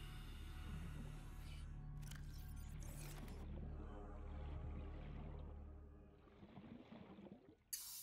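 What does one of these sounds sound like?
Muffled underwater rumbling drones on.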